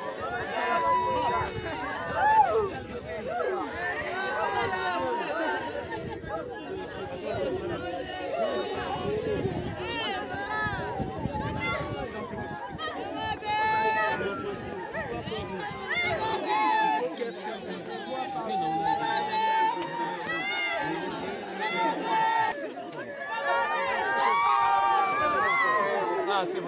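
A crowd of men and women talks loudly over one another outdoors.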